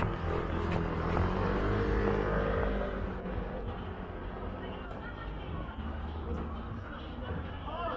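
Footsteps of many people shuffle on pavement.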